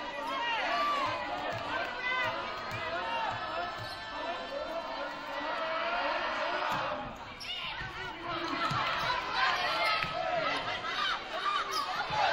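A volleyball is struck with dull thuds.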